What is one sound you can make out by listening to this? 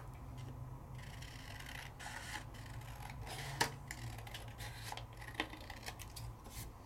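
Scissors snip through thin card.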